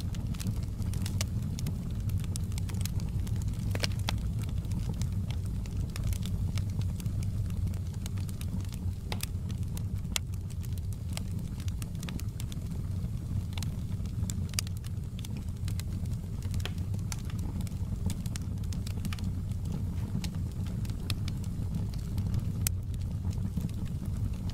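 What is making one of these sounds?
A wood fire roars steadily.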